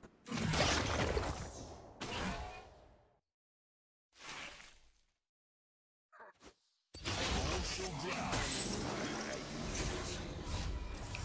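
Magical spell effects whoosh and crackle in a video game.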